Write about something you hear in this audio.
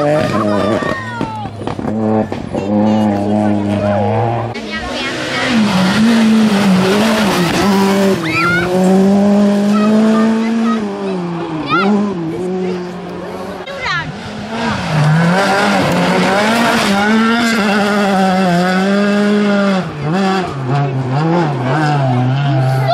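Gravel sprays and crunches under spinning tyres.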